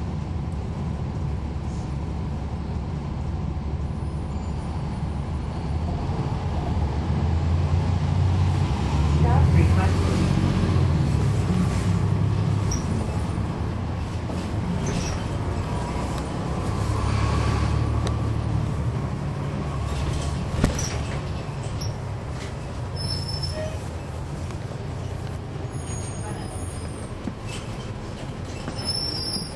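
A bus engine idles with a low, steady rumble that swells now and then.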